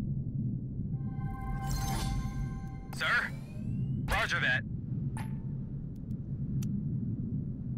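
Short interface chimes and clicks sound.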